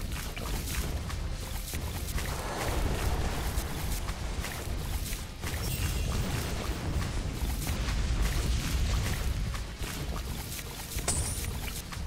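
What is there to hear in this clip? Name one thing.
Explosions boom loudly in a game.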